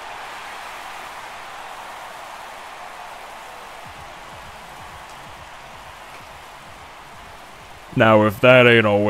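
A crowd cheers loudly in a large stadium.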